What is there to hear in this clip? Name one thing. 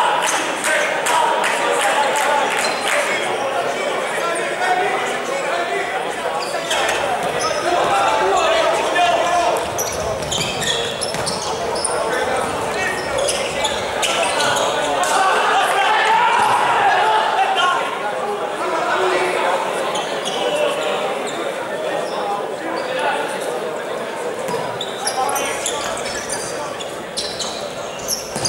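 A ball thumps off a player's foot.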